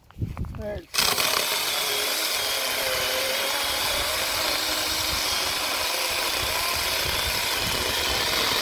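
A small electric chainsaw whines steadily as it cuts through a log.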